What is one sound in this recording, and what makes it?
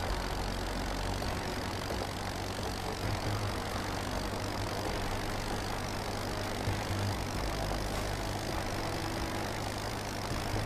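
A truck engine rumbles steadily as it drives.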